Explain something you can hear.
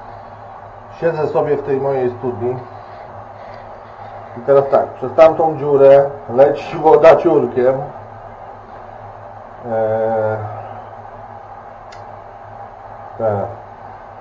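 A man speaks calmly and close by, explaining.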